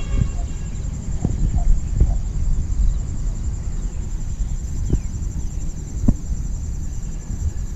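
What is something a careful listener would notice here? Fingers rustle and click while handling a small object up close.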